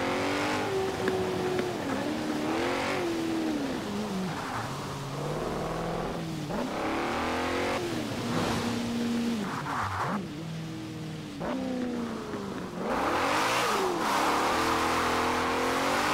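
Tyres screech as a car drifts through bends.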